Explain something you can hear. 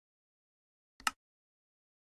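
A short click sounds.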